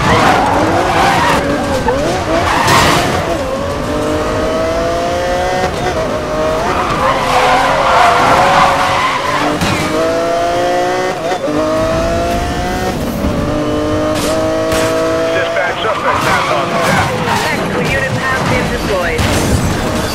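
A sports car engine roars and climbs in pitch as it shifts through the gears.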